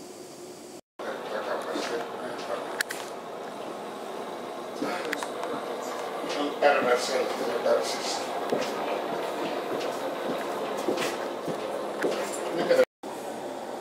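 A train rumbles and rattles along the tracks, heard from inside a carriage.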